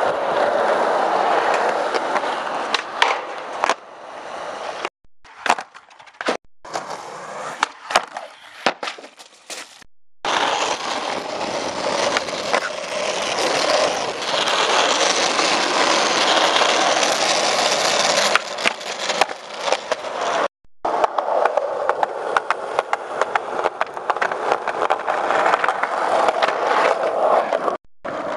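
Skateboard wheels roll loudly over pavement.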